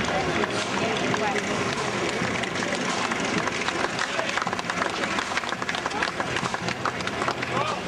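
A jeep engine rumbles past slowly.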